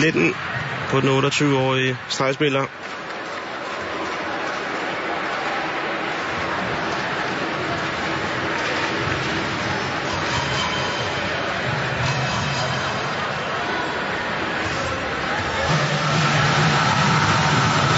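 Players shout and cheer in a large echoing hall.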